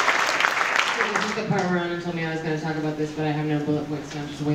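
A group of young men and women sings together.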